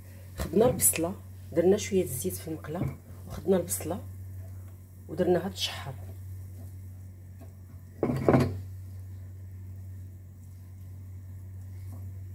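A wooden spoon scrapes and stirs in a frying pan.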